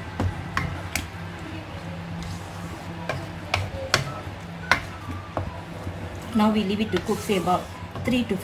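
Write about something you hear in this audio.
A wooden spoon stirs thick sauce and knocks against a metal pan.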